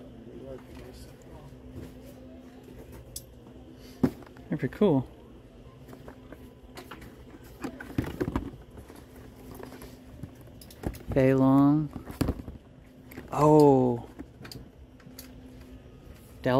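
Hands handle plastic-wrapped boxes with light tapping and rustling.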